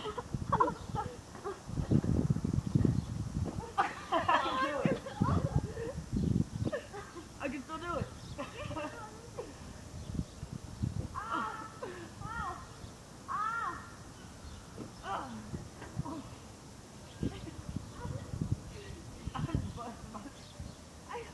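Children shout and laugh outdoors nearby.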